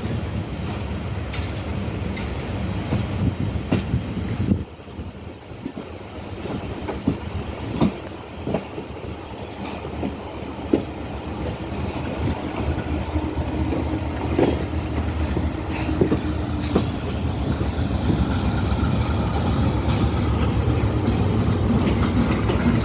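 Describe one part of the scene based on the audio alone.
A diesel locomotive engine rumbles as a train approaches.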